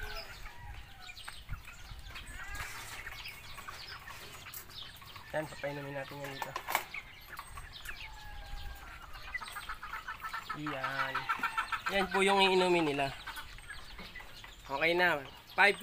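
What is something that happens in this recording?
Birds chirp nearby.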